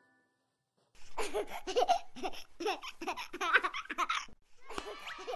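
A small child babbles cheerfully, close by.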